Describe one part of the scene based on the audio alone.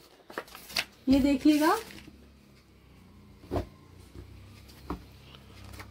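Glossy paper crinkles as a woman handles a brochure.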